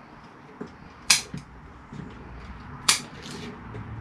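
Metal tools click and snip.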